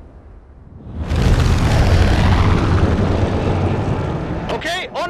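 A large propeller plane drones overhead.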